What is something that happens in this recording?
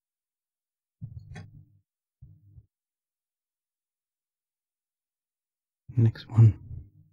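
Plastic jointed arms creak and click as hands bend them.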